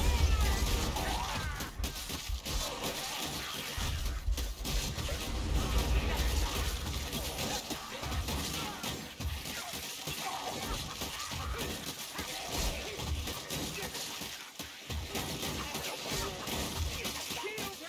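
A horde of creatures snarls and screeches close by.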